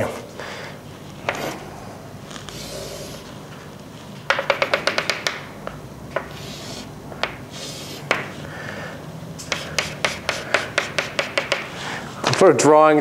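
Chalk taps and scrapes rapidly on a blackboard.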